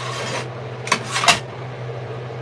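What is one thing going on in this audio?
A metal spoon taps against a pot.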